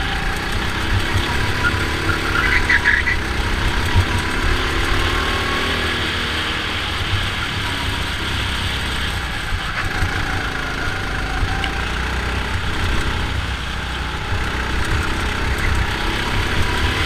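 A go-kart engine buzzes loudly and steadily up close.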